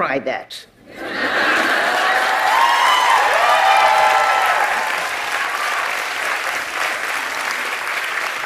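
An audience applauds and cheers.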